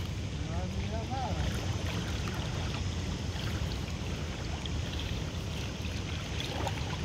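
Water sloshes gently around a man's legs as he wades.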